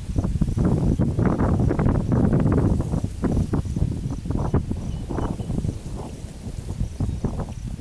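Wind rumbles and buffets in gusts outdoors.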